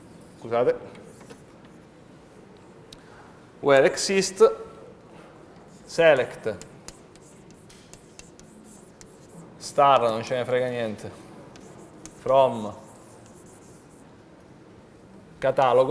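A man speaks in short phrases in a room with a slight echo.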